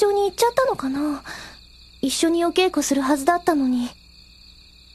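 A young woman speaks softly and worriedly.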